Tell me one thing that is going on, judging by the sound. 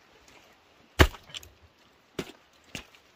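Footsteps thud on soft earth.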